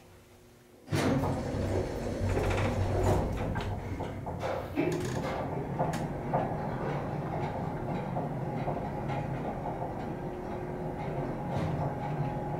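An elevator car hums and rumbles as it moves.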